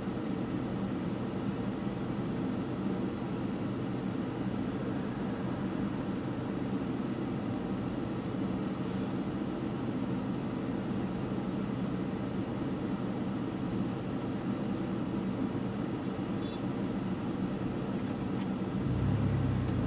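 A car engine idles with a steady low hum, heard from inside the car.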